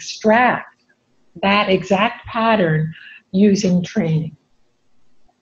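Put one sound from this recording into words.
A middle-aged woman speaks calmly and clearly, close by.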